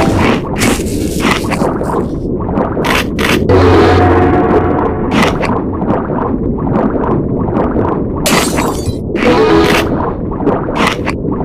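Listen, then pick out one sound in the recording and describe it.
Crunching bite sound effects from a game ring out.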